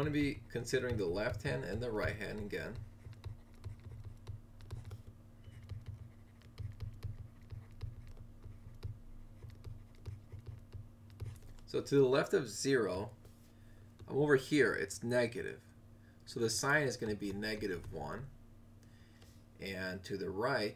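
A stylus taps and scratches on a drawing tablet.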